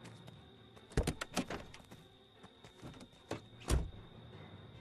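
A car door clicks open and slams.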